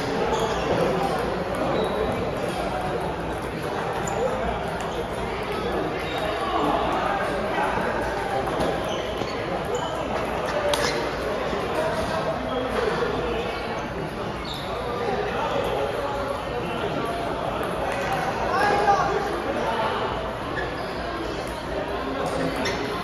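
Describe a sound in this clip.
Voices murmur and echo in a large hall.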